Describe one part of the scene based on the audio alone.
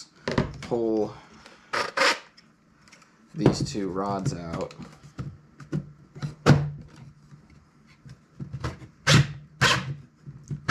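A plastic device knocks and clatters as it is handled.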